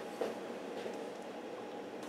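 Dice clatter softly in a wooden box.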